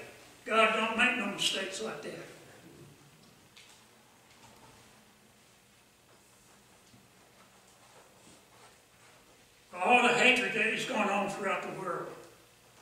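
An elderly man speaks slowly and solemnly through a microphone in a room with a slight echo.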